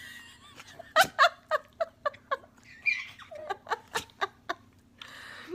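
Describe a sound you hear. A baby giggles and laughs in short bursts close by.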